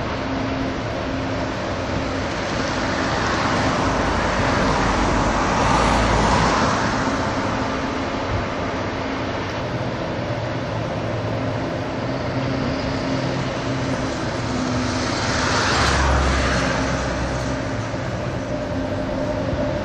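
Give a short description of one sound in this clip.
Wind blows steadily outdoors, rising in gusts now and then.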